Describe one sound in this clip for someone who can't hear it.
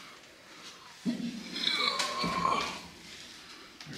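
A young man grunts with effort.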